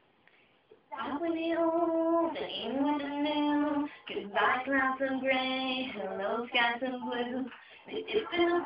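A pop song with a singing voice plays through a small device speaker.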